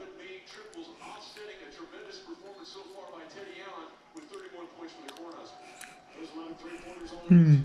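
Voices and sounds from a television play quietly across the room.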